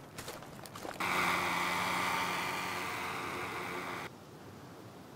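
A drone buzzes overhead.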